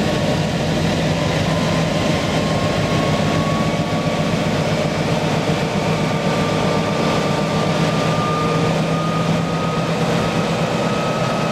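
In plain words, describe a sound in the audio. Train wheels roll and clatter slowly over the rails.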